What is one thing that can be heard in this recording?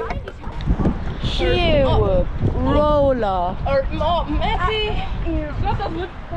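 A teenage boy talks casually nearby.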